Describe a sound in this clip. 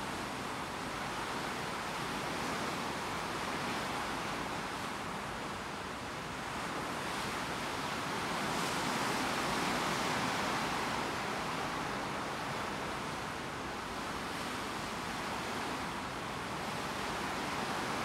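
Water swishes against a ship's hull.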